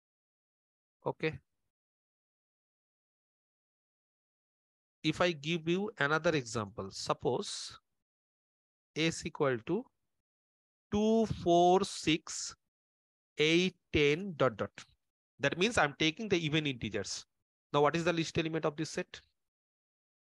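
A man speaks calmly through a microphone, explaining in short phrases with pauses.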